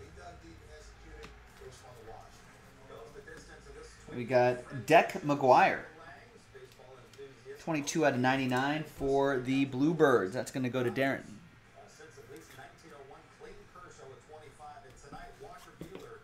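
Cards rustle and slide in a man's hands.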